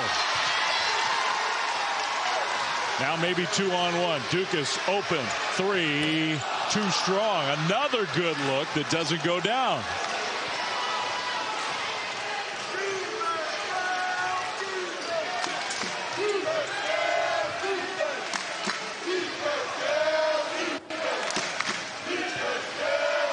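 A large indoor crowd cheers and murmurs in an echoing arena.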